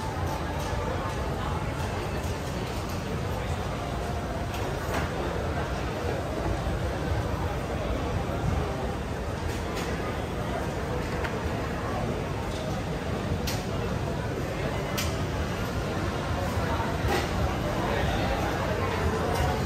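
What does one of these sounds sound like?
A busy crowd murmurs all around outdoors.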